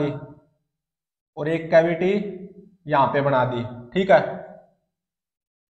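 A young man explains calmly, close by.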